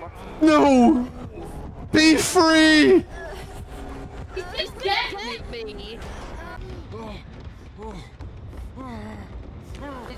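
A young man talks animatedly into a close microphone, at times shouting loudly.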